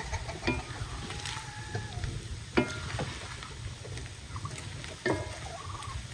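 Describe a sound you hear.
A wooden spatula scrapes in a frying pan.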